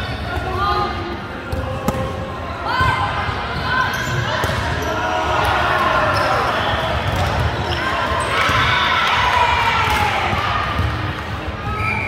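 Young women shout and call out to each other in a large echoing hall.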